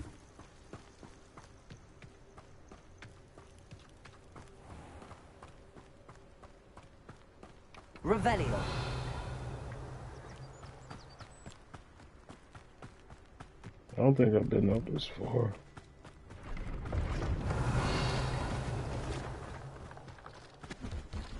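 Quick footsteps run over soft ground.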